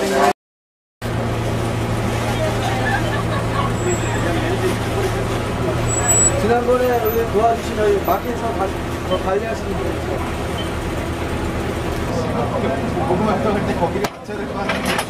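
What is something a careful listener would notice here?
Two women talk together nearby.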